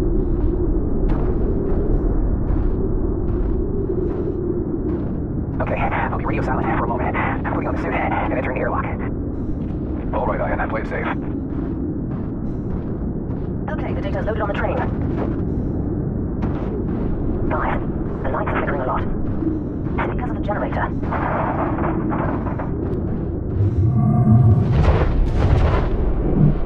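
Wind blows steadily in a low roar.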